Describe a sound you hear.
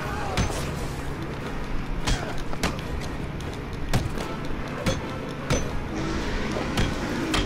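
Punches and kicks land with heavy thuds and smacks again and again.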